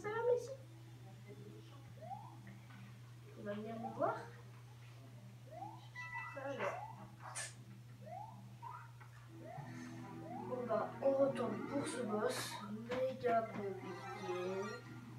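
Video game music plays from a television.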